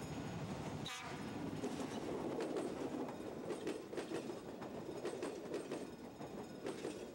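A passing train's wheels clatter over rail joints close by.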